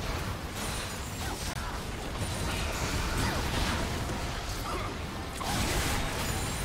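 Spells crackle and whoosh in a fast fantasy battle.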